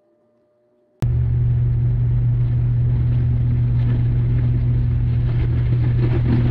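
A turboprop engine drones loudly and steadily close by.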